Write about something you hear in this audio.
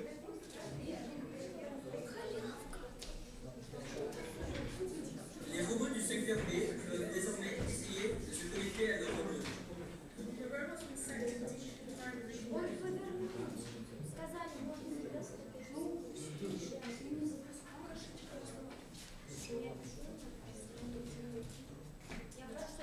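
Boys talk and chatter nearby in a room with a slight echo.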